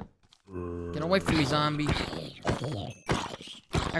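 A zombie groans close by.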